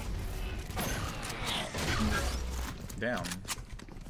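A game ability bursts with a loud whoosh.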